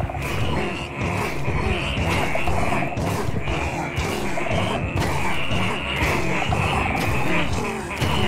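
Game weapons clang and strike against a large creature.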